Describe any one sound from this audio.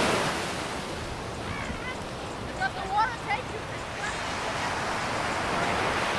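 Water splashes as people wade through the shallows.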